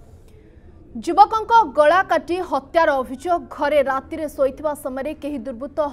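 A young woman speaks calmly and clearly into a microphone, like a news reader.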